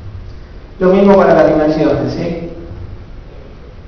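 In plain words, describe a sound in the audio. A man speaks briefly into a microphone, heard through a loudspeaker in a room.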